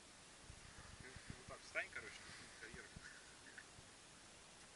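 Young men talk casually nearby outdoors.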